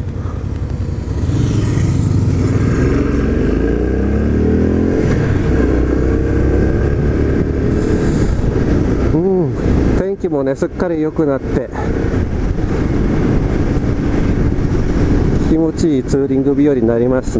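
A motorcycle engine revs up and down as the bike accelerates.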